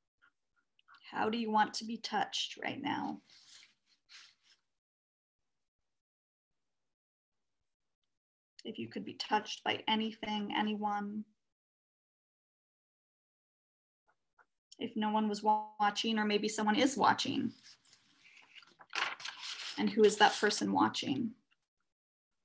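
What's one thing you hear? A young woman speaks calmly and close by, heard through an online call.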